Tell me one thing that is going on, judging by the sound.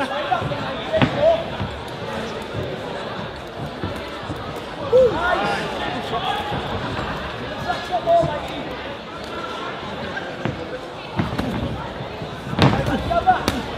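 Gloved punches land with dull thuds.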